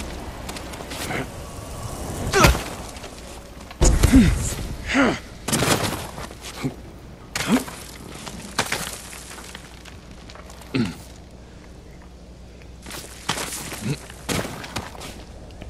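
Hands scrape and grip on rock while climbing.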